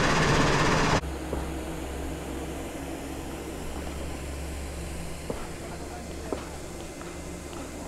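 A river rushes in the distance.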